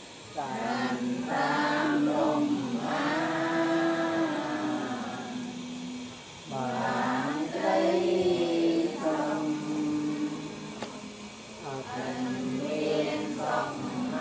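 A group of men and women chant together in a steady, sung rhythm outdoors.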